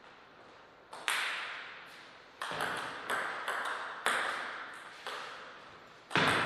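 A table tennis ball clicks back and forth on paddles and the table in a rally.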